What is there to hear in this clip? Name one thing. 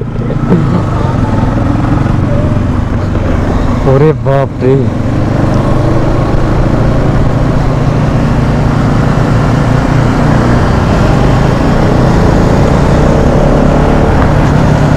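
A sport motorcycle engine hums while cruising along a road.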